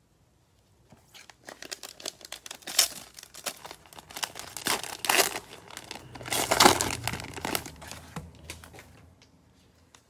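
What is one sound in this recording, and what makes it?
A foil wrapper crinkles and tears as it is ripped open.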